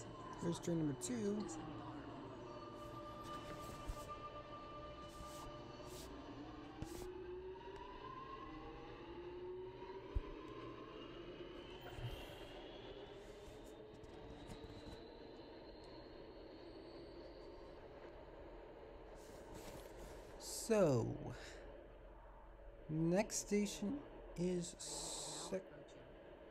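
A subway train rumbles steadily along the track.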